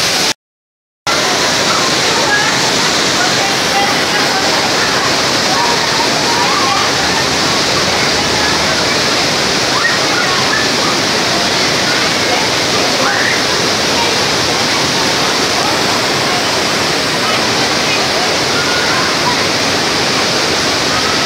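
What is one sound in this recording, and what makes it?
Shallow water flows and babbles over rocks.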